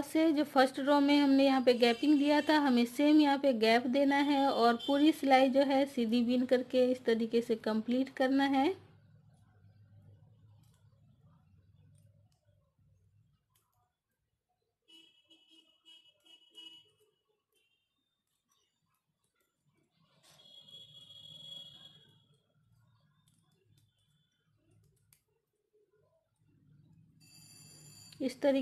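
Knitting needles click softly together.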